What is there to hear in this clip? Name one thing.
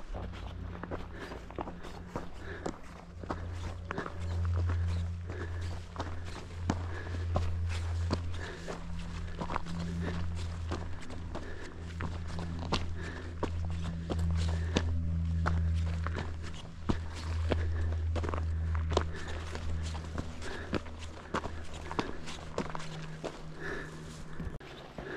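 Footsteps tread steadily along a dirt path outdoors.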